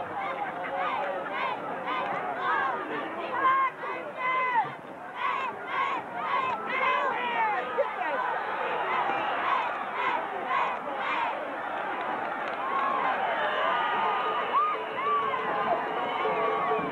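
A large crowd cheers and shouts in an open stadium.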